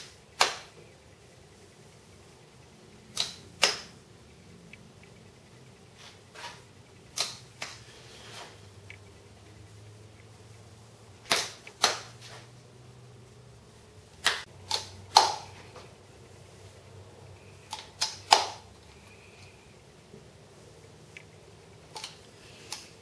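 A caulking gun's ratchet trigger clicks as it is squeezed.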